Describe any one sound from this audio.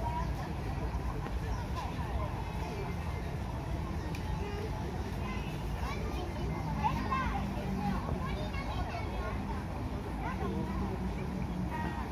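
Water trickles and laps gently.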